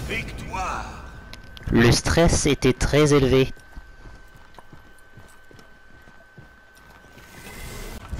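Heavy armoured footsteps clank on stone.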